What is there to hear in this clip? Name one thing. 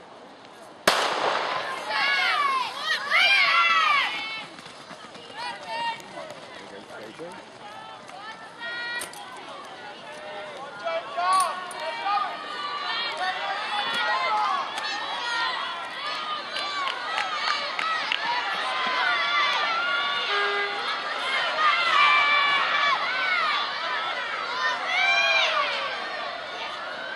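A crowd of spectators outdoors cheers and shouts encouragement.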